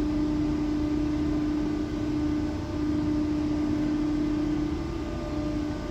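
An underground train hums steadily.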